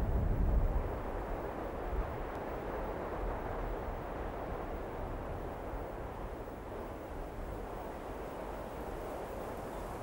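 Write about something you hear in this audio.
Wind blows through tall grass outdoors.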